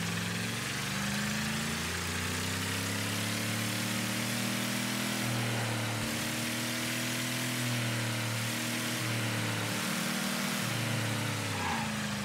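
A car engine roars and revs up and down through the gears.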